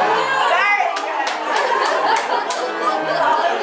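Several people clap their hands.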